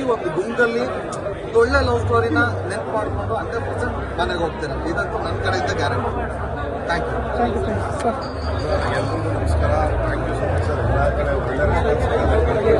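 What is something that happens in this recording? A crowd cheers and shouts close by.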